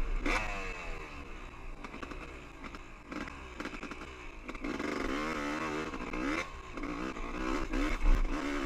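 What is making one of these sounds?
A dirt bike engine revs and whines up and down close by.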